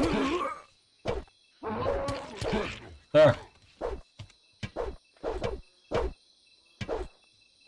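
A sword swishes through the air in quick swings.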